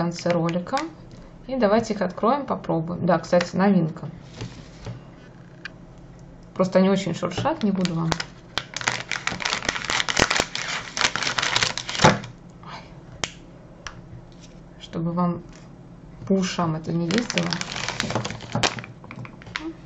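A plastic bag crinkles as hands handle it.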